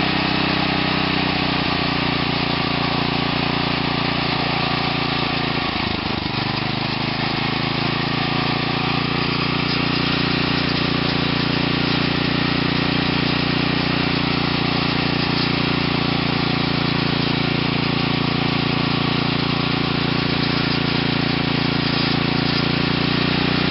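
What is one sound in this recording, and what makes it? A small engine runs loudly close by, its speed dipping briefly and then rising back up.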